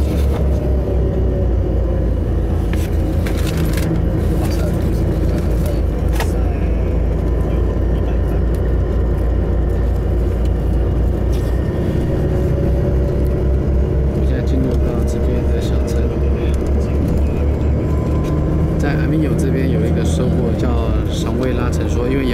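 A bus engine hums and drones steadily from inside the vehicle.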